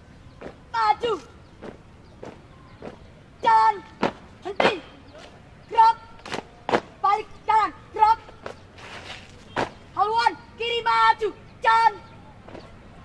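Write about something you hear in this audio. A young man shouts drill commands nearby.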